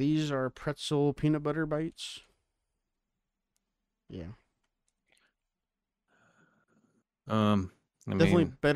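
A man speaks with animation, close to a microphone, with pauses.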